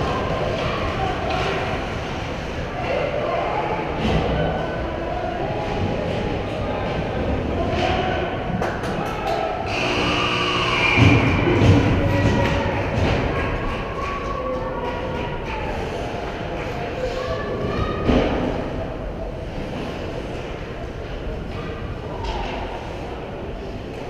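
Ice skates scrape and hiss across the ice in a large echoing hall.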